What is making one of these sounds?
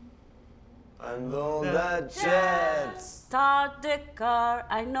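A young man answers in a cheerful voice, close by.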